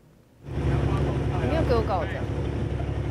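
A woman speaks loudly over a boat engine's roar.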